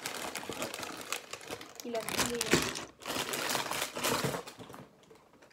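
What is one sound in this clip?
A plastic bag crinkles and rustles as it is handled up close.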